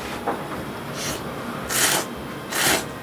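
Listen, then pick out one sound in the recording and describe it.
A man loudly slurps noodles in short bursts.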